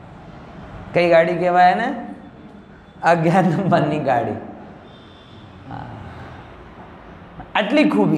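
A man chants in a steady, drawn-out voice, heard through a microphone.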